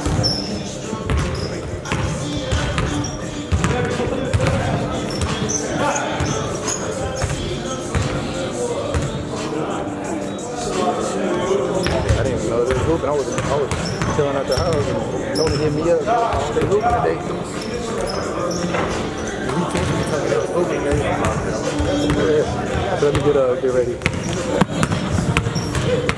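Young men shout and call out to each other across an echoing hall.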